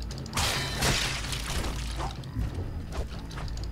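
A monster shrieks and snarls.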